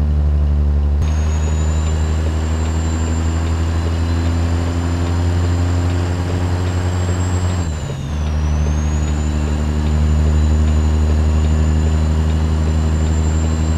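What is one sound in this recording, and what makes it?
A high, thin whine sounds inside a truck cab.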